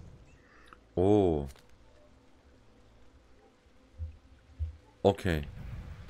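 A man speaks briefly and casually into a close microphone.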